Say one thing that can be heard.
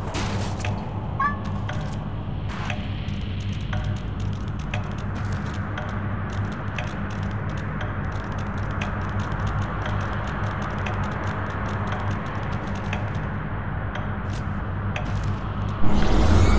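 Hooves clatter quickly on a hard floor.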